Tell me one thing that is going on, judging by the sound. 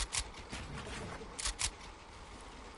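A shotgun fires with sharp blasts.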